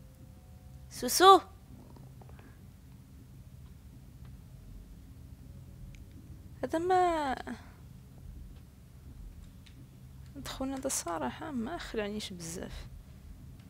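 A young woman exclaims and talks in short bursts close to a microphone.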